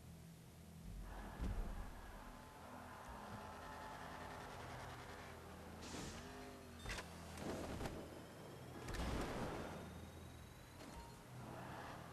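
A car engine revs loudly as the car races along.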